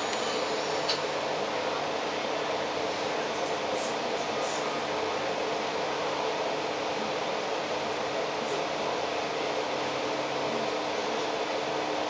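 A bus engine rumbles steadily close by in street traffic.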